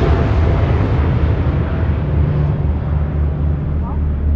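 A jet engine drones steadily from inside a cabin.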